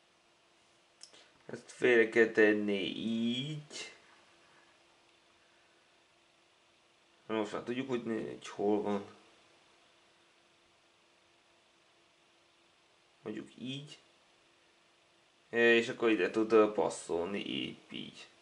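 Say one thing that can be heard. A man talks calmly close by, in short bursts.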